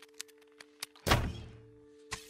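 An arrow is loosed with a sharp twang.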